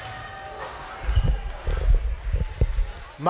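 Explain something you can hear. A basketball bounces with loud thumps on the court.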